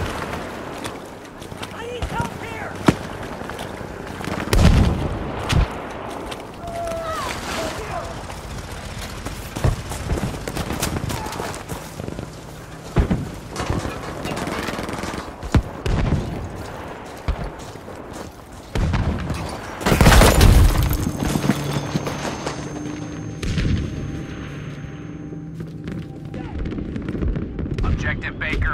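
Gunshots crack in loud bursts.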